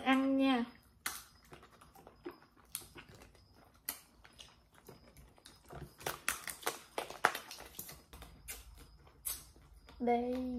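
Lobster shell cracks and crunches as it is pulled apart.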